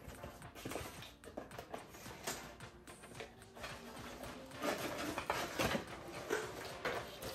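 Cardboard packaging rustles and scrapes in hands.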